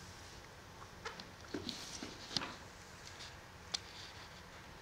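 Bare feet tap and slide softly on a wooden floor.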